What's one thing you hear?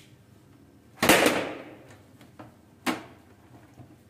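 A printer's scanner lid thumps as it is lifted and set down.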